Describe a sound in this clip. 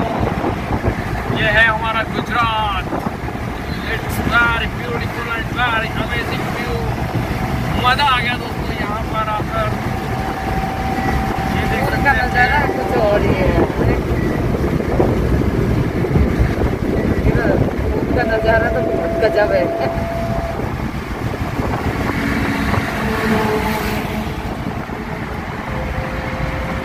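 Tyres roar on asphalt, heard from inside a minivan cruising on a highway.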